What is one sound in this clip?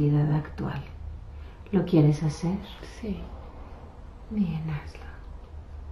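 A woman speaks nearby in short, halting bursts.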